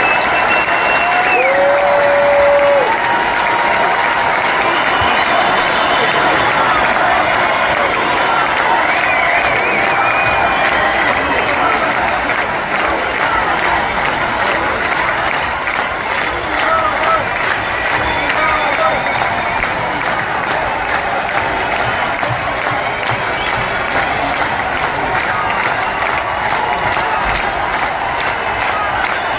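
A large crowd cheers and sings along.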